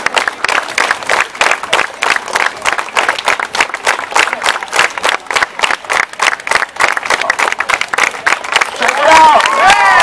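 A crowd claps along in a fast, steady rhythm outdoors.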